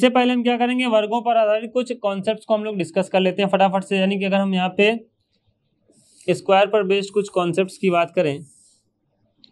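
A man lectures with animation, close to a microphone.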